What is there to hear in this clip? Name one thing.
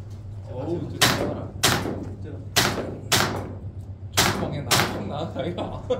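A pistol fires a quick series of sharp shots that ring out in an echoing hall.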